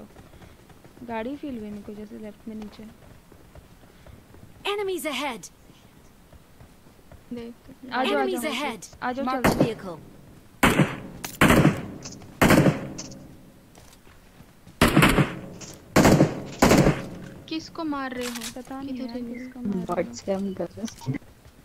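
A young woman talks calmly into a microphone.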